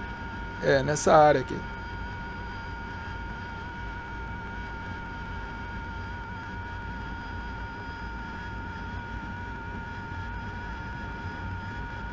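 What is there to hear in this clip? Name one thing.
A jet engine hums steadily with a low rumble.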